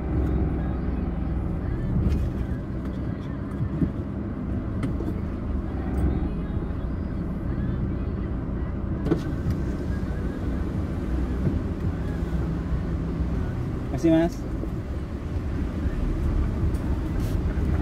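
A car engine rumbles low and steady from inside a slowly moving car.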